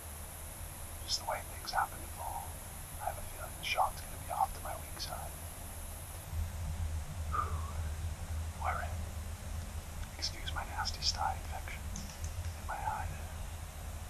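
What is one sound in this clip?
A young man whispers close by.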